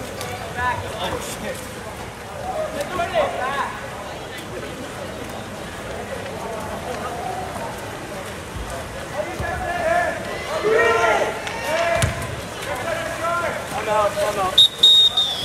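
Players splash and churn the water.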